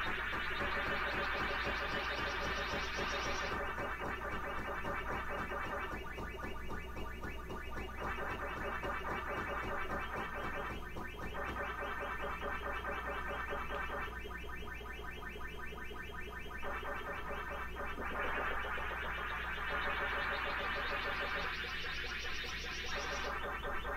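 An electronic siren tone rises over and over in a game.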